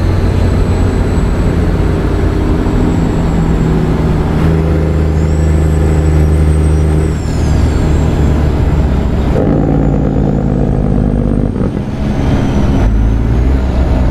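A truck engine drones steadily, changing pitch as it shifts gears.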